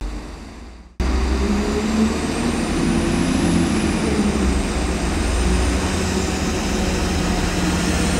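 An electric train whines as it rolls slowly into a station.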